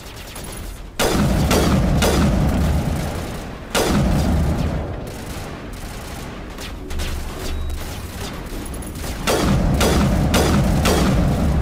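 Rifle shots crack loudly with booming echoes.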